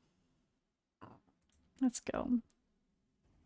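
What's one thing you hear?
A young woman speaks briefly and casually into a close microphone.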